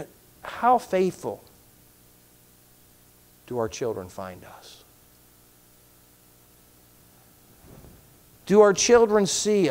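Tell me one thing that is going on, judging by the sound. A middle-aged man speaks slowly and deliberately into a microphone, with long pauses.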